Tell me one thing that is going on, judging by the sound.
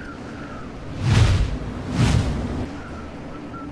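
Air whooshes loudly twice.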